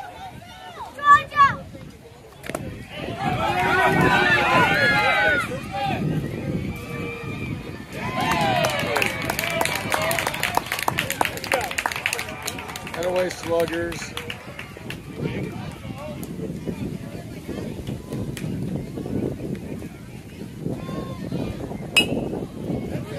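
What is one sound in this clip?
A metal bat strikes a ball with a sharp ping.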